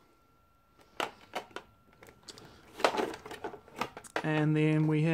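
Plastic figures and a plastic tray click and rattle as they are handled.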